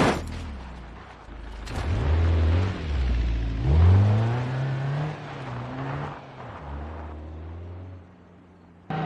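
A car engine revs and roars.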